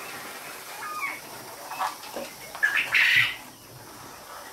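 A metal wire cage rattles as it is handled.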